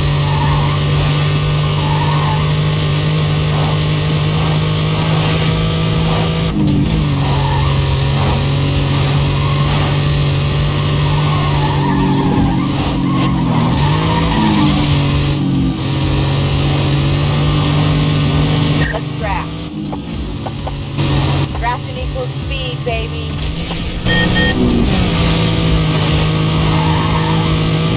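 A racing car's engine roars steadily at high speed.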